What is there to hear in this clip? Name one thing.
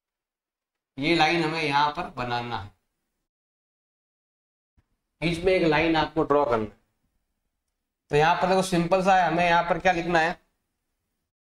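A man speaks clearly into a close microphone, explaining in short bursts with pauses.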